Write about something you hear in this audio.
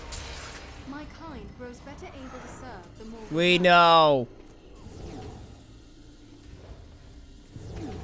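A magic blast crackles and whooshes.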